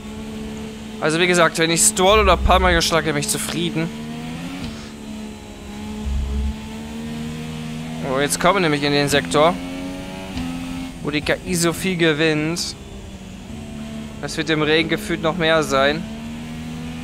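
A racing car engine revs up sharply through the gears, again and again.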